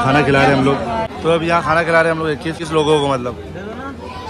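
A man speaks loudly close by.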